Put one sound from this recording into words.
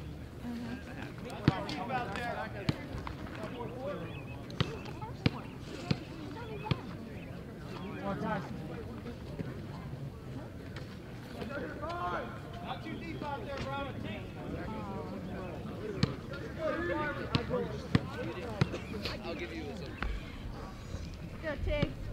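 Young men talk and call out nearby outdoors.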